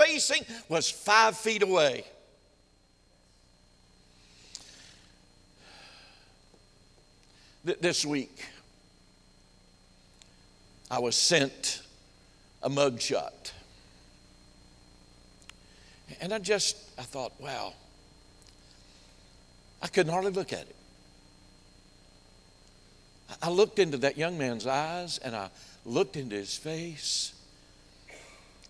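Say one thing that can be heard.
An elderly man preaches with animation through a microphone, with pauses between phrases.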